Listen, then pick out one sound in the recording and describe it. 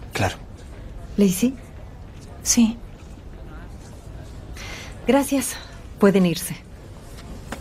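A woman speaks calmly and warmly.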